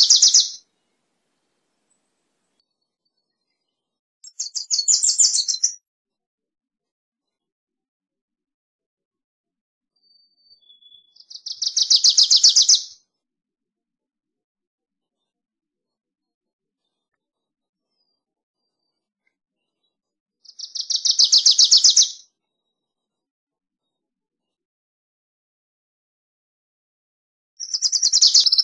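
A small songbird sings a quick trilling song close by, again and again with long silent pauses.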